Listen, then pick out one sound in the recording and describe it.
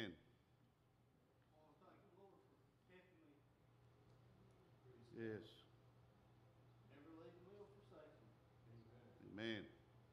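An older man speaks calmly into a microphone in a large echoing hall.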